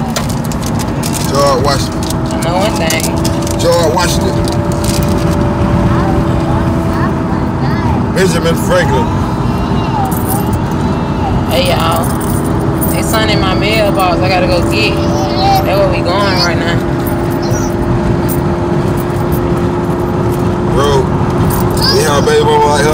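A car engine hums steadily with road rumble.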